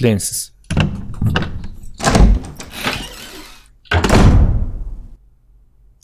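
A door creaks open slowly.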